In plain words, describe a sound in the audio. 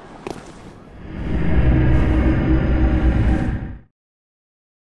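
A deep magical whoosh swells and then cuts off.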